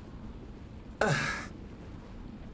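A man shouts briefly close to a microphone.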